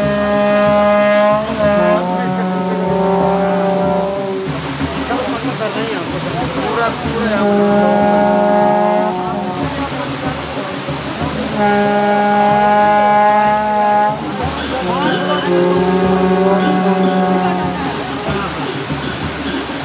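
Men chant in long, held, wavering phrases close by.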